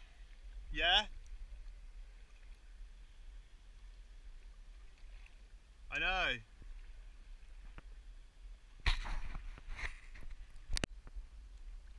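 A kayak paddle dips and splashes in the water.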